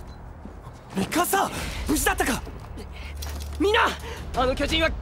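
A young man shouts with alarm.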